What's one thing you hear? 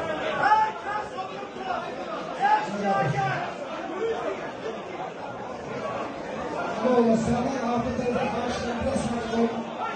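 A crowd of men talks and shouts loudly in a busy room.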